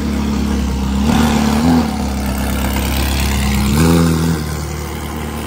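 A sports car engine revs loudly in short bursts.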